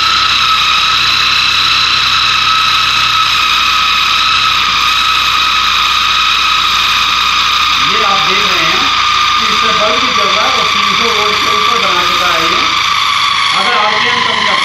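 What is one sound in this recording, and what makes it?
An electric drill whirs steadily at high speed.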